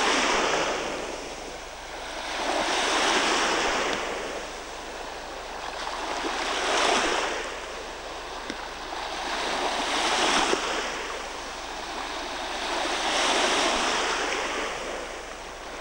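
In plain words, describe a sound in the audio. Small waves wash onto the shore in slow, regular swells.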